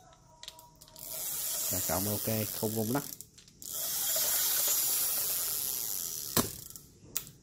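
A fishing reel spins with a rapid whirring hiss.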